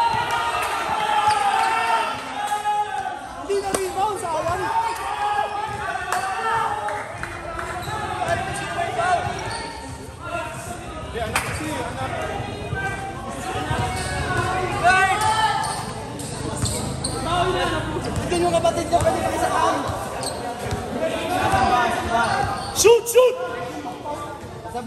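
Young men talk and shout nearby, with many voices overlapping.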